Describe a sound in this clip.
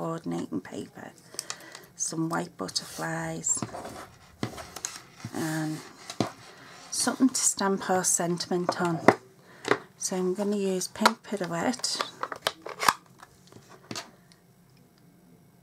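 Paper rustles and crinkles as hands handle it.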